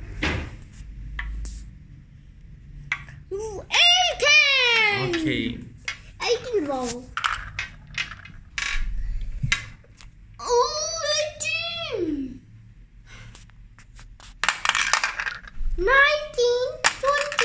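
Plastic balls clatter and roll in a plastic toy.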